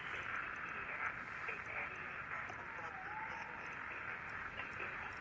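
Radio static hisses steadily with a warbling tone.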